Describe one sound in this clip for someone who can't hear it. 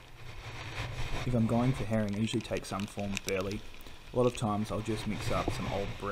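Gentle waves lap against rocks outdoors.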